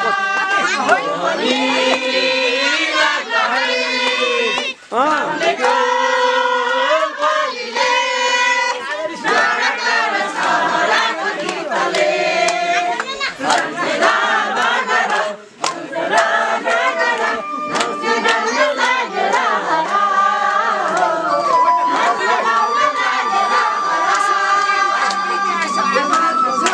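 A crowd of men and women sings loudly together nearby.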